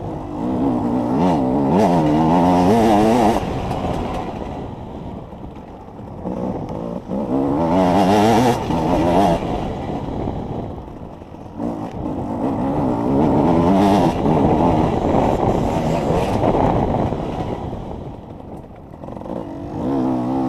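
A motorcycle engine revs hard, rising and falling as the rider shifts gears.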